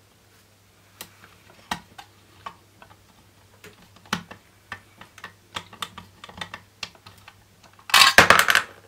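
Small plastic and metal parts click and tap as they are handled.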